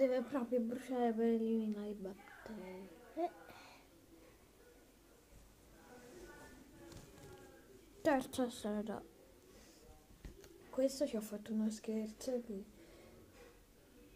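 A girl talks with animation close to the microphone.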